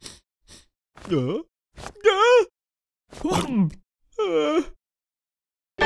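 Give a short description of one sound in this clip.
A man shouts in a high, wavering cartoon voice.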